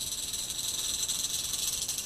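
A rattlesnake rattles with a steady, dry buzz.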